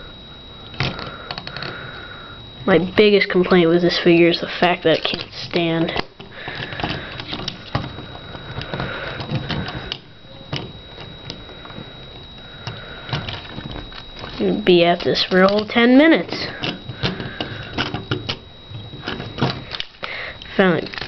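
Plastic parts of a toy click and rattle.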